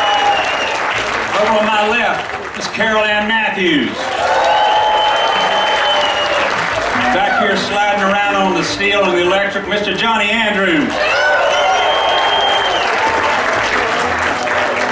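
A band plays country music live on acoustic guitars and bass, amplified through loudspeakers.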